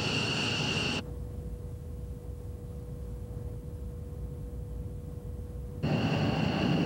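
An aircraft engine drones steadily, heard from inside the cabin.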